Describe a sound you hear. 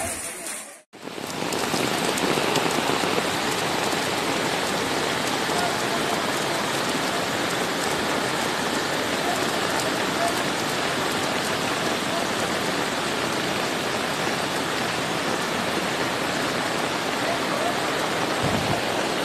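Floodwater rushes and roars steadily.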